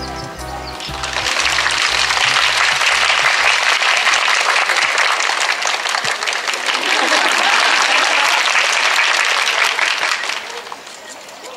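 A crowd applauds and cheers loudly outdoors.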